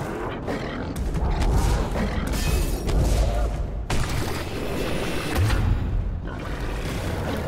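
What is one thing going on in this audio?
Magic blasts burst and whoosh.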